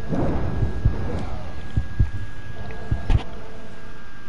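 Heavy blows and crashes hit hard as a winged creature attacks.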